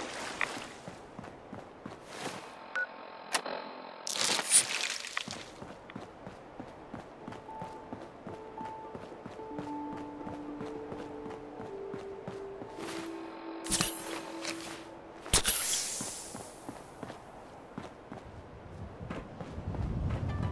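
Footsteps crunch on rough stone.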